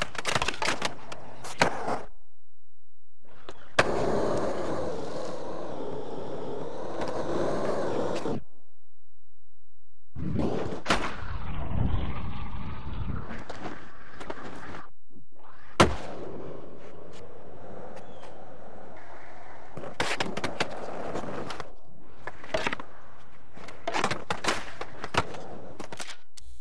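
Skateboard wheels roll and rumble over concrete.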